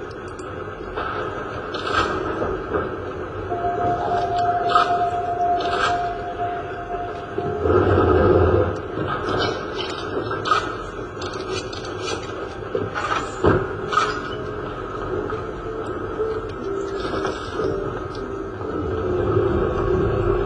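Gunshots fire from a video game through a speaker.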